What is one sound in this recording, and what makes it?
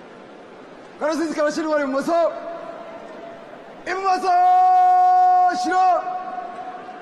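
A man shouts drill commands, echoing across a stadium.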